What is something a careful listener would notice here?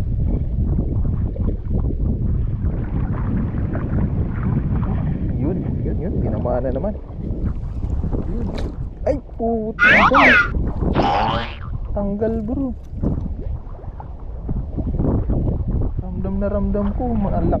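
Wind buffets the microphone on open water.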